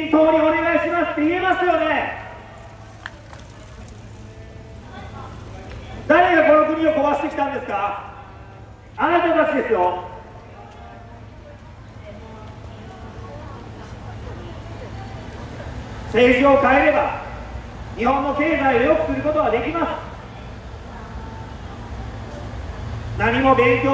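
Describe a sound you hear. A man makes a speech through a loudspeaker outdoors, in loud bursts with pauses.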